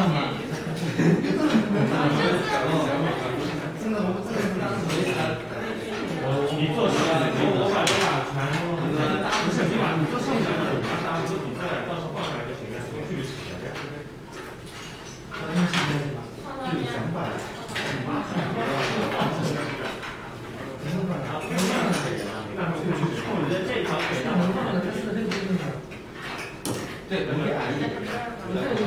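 Several young people chat and talk over each other in a large echoing hall.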